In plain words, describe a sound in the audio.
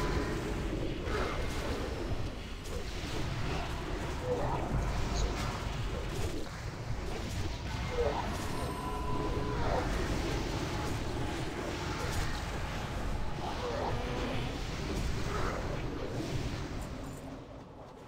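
Spell effects and weapon hits clash loudly in a game battle.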